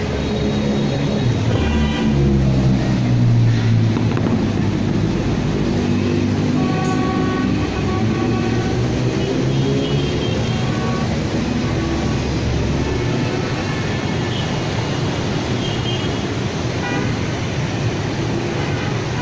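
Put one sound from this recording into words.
Motorbike engines drone as they pass close by.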